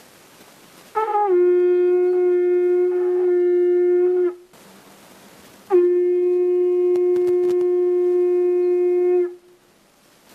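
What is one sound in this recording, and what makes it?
A horn blows long, steady low notes.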